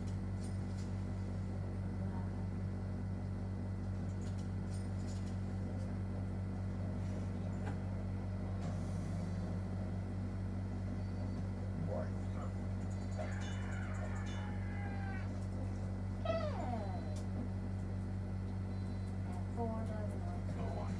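Game sounds play from a television.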